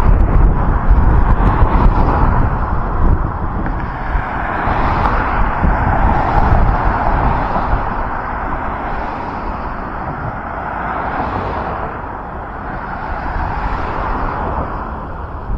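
Traffic rumbles past on a busy road outdoors.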